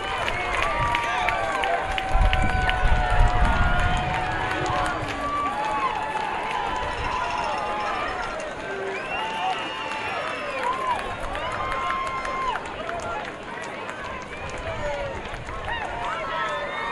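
A crowd murmurs and cheers outdoors.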